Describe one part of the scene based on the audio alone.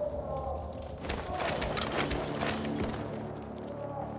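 A wooden crate is smashed open.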